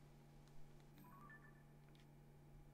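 A soft electronic chime sounds.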